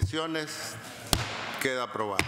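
A gavel knocks once on a wooden desk.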